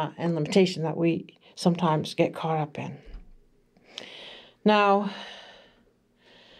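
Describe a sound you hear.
An older woman speaks slowly and calmly into a microphone.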